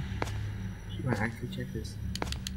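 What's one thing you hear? A young man speaks quietly into a close microphone.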